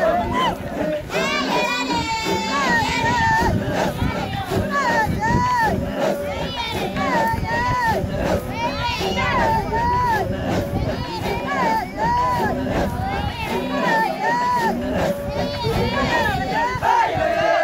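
Feet stamp on dry ground as people jump.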